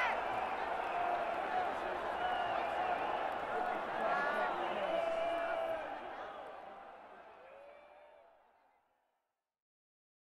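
A large crowd cheers and whistles loudly in a big echoing arena, then fades away.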